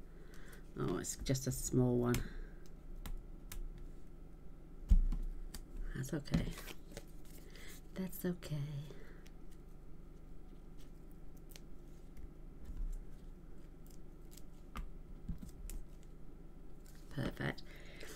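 A woman speaks calmly and close to a microphone.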